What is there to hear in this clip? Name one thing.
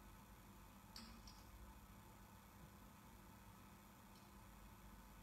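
Glass and metal vessels clink softly on a table.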